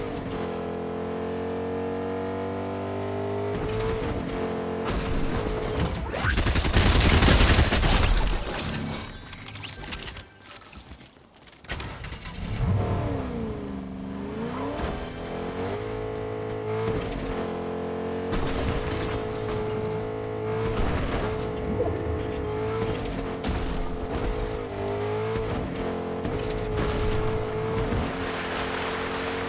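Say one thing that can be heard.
A truck engine roars as it drives over rough ground.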